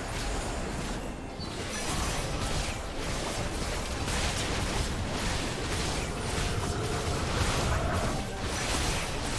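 Video game combat effects whoosh, crackle and clash continuously.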